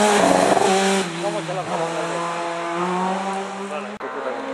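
A rally car engine revs up and down while fading away into the distance.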